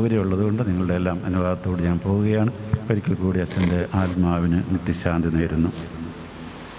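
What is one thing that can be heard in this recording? A man chants into a microphone in a large echoing hall.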